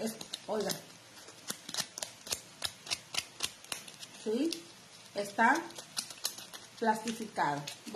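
A thin foam leaf crinkles and rustles as hands squeeze it.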